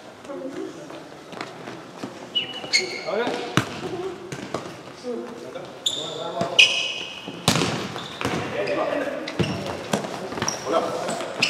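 A ball thuds as players kick it in a large echoing hall.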